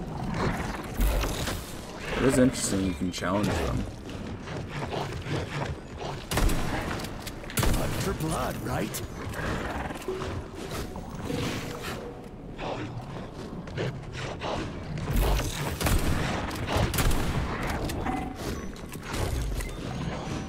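Shotgun blasts boom loudly now and then.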